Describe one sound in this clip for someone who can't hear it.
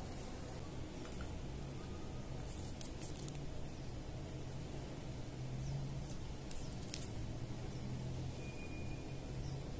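Small plastic clicks and soft rustles sound close by.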